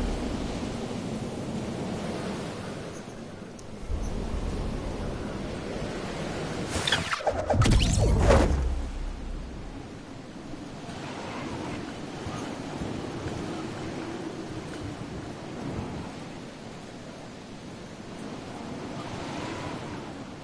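Wind rushes steadily during a glider descent.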